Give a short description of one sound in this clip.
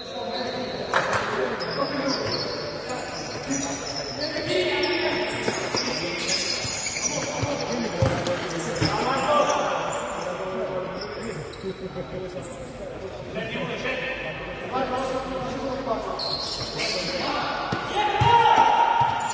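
A ball is kicked with sharp thuds in an echoing hall.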